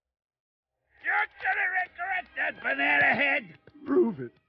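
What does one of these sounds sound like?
A young man replies, sneering.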